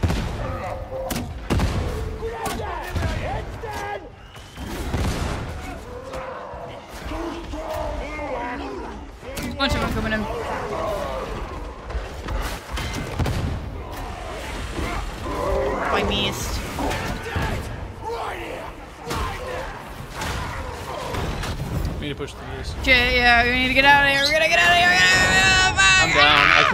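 Explosions boom and flames roar.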